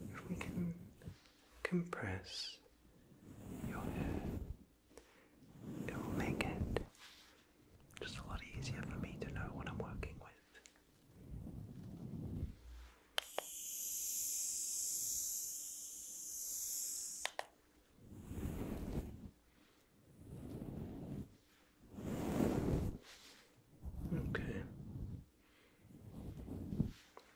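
A young man whispers softly, very close to a microphone.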